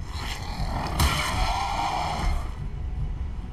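A bear growls and bites as it strikes.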